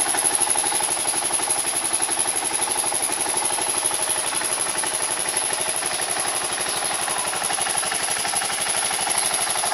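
A motorcycle engine idles close by with a fast, steady putter.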